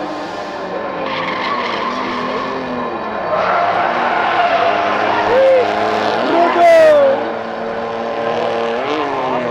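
Tyres screech on the track surface.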